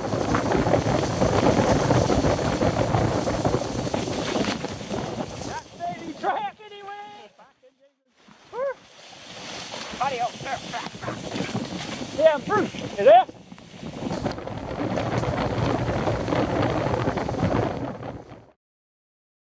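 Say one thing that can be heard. Bicycle tyres rumble and rattle over a bumpy dirt trail.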